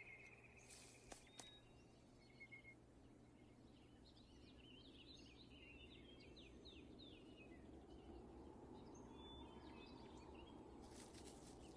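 A deer rustles through dry branches.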